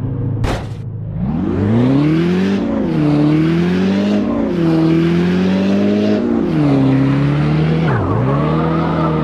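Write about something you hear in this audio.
A car engine revs up and down as the car speeds away.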